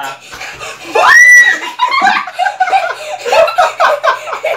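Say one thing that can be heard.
A young girl squeals and laughs loudly close by.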